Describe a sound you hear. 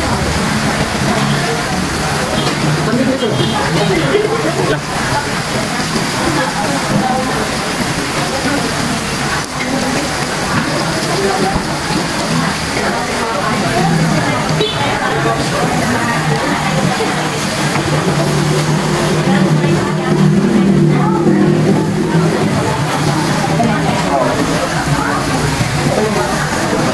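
Meat sizzles on a hot grill pan.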